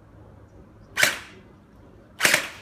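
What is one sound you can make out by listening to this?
An airsoft rifle fires two sharp shots.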